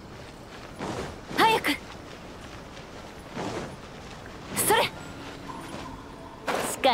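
A sword whooshes through the air in quick swings.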